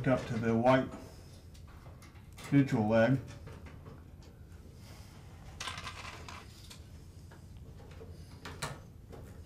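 Wires rustle and click as a man's hands work on them.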